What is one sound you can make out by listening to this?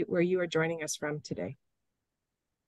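A woman speaks briefly and calmly over an online call.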